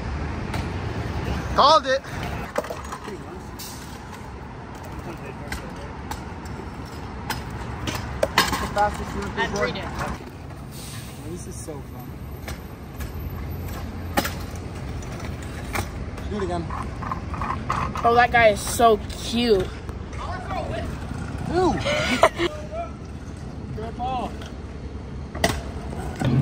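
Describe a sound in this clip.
A scooter lands from a jump with a sharp clack.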